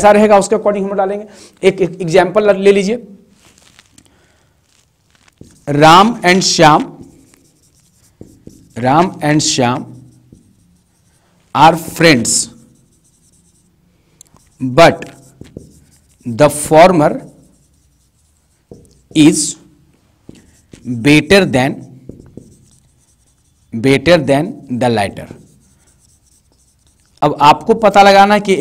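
A man speaks calmly in short phrases, close to a microphone.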